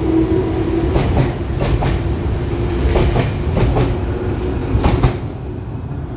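Train wheels clack rhythmically over rail joints.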